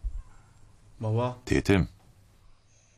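A young man speaks in a low voice close by.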